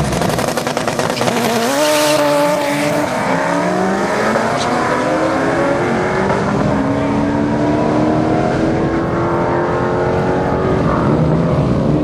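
A race car engine roars and revs up as the car launches away.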